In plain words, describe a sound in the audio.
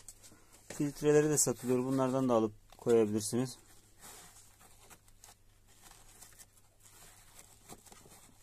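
Fingers rub against a foam filter.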